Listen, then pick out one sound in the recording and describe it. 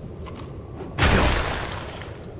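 A heavy thud booms and slowly fades.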